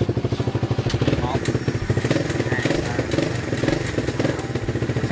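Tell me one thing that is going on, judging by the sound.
A motorcycle engine revs up briefly when the throttle is twisted.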